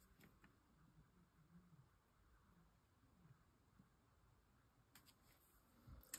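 A felt-tip marker squeaks softly across paper.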